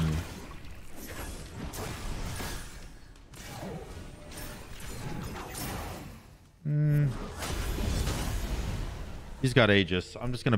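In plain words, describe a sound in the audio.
Game sound effects whoosh and clash.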